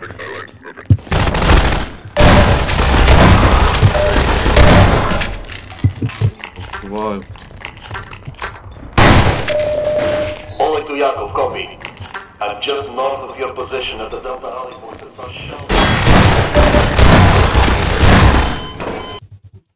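Shotgun blasts boom loudly, one after another.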